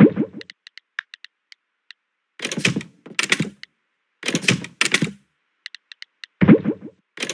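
Short soft menu blips tick in quick succession.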